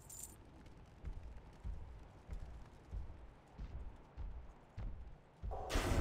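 Heavy weapon blows land with dull, regular thuds.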